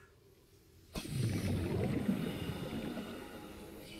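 Water rumbles and bubbles outside.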